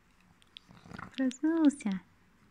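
A dog whines in short high cries.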